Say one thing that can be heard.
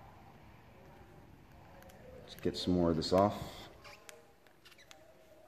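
A plastic trim strip clicks softly as hands handle it.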